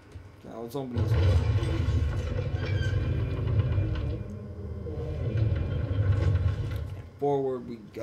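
A heavy stone door grinds slowly open with a deep rumble.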